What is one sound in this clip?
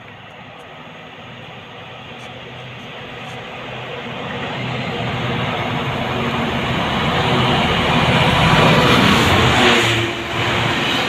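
A diesel freight train approaches with a rising rumble and roars past close by.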